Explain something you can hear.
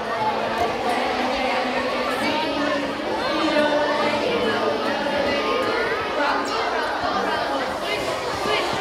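A crowd of children chatters and calls out.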